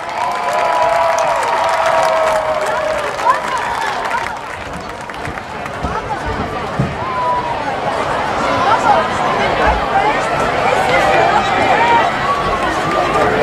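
A marching band plays brass and percussion outdoors.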